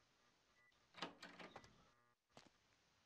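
A heavy door swings open with a creak.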